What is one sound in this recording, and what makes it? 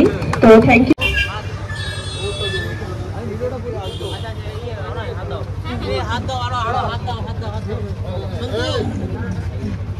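A crowd of young men chatter and call out close by.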